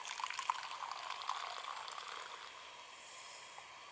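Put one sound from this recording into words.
Water pours from a kettle into a pot.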